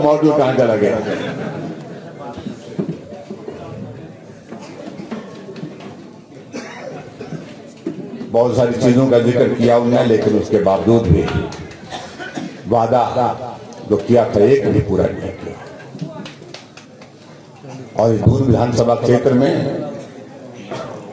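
A middle-aged man speaks with animation into a microphone over loudspeakers, echoing outdoors.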